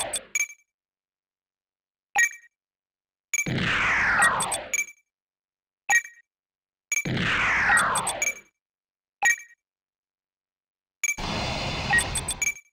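Short electronic beeps sound again and again as menu choices are made.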